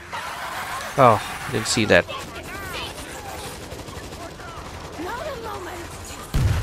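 A young man speaks with animation, close to a headset microphone.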